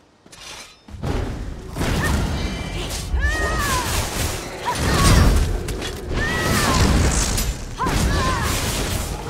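Weapons clash and magic blasts loudly in a fight.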